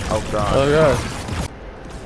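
A creature bursts with a wet splatter.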